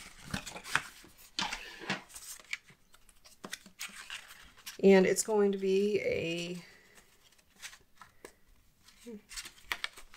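Card paper rustles and taps against a table.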